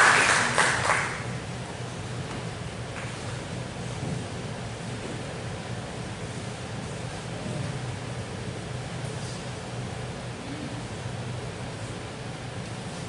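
A crowd murmurs quietly in a large hall.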